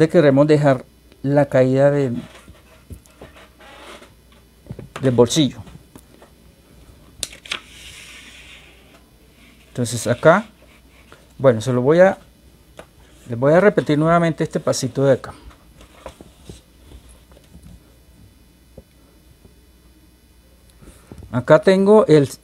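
A man talks calmly and clearly close by, in short phrases with pauses.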